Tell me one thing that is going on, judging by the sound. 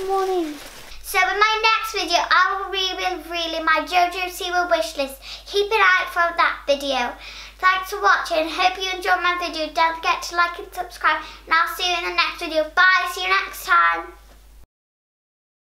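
A young girl talks brightly and with animation close to a microphone.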